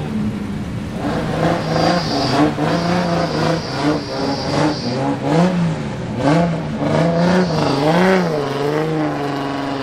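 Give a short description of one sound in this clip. A race car engine revs up and down repeatedly, loud and close.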